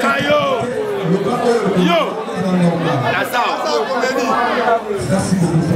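A man speaks loudly into a microphone through loudspeakers.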